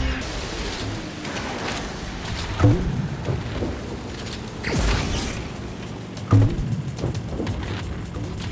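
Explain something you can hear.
Water splashes against a speeding boat.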